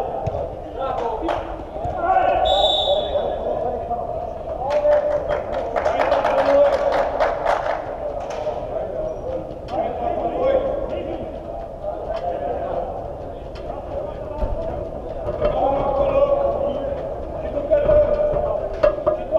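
Men shout and call out to each other across an echoing indoor pitch.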